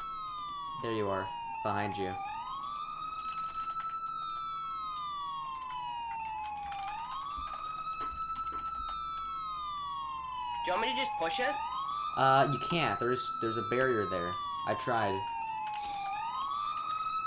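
A siren wails steadily, rising and falling over and over.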